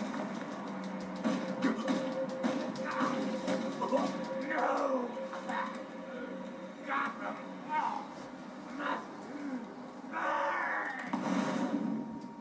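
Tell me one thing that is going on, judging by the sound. Punches and blows thud from a television speaker.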